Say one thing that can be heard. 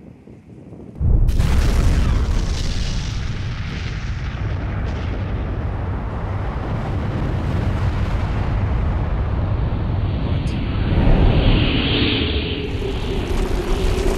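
A huge explosion booms suddenly and rumbles on with a deep, steady roar.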